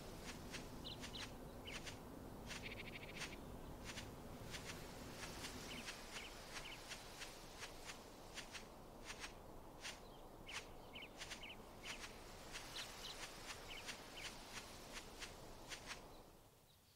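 Footsteps patter quickly on soft ground.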